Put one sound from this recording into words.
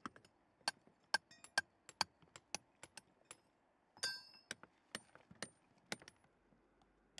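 A hammer chips and knocks sharply on stone, outdoors.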